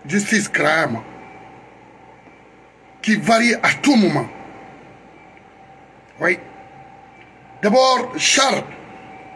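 A middle-aged man speaks close to a microphone in short, animated bursts with pauses.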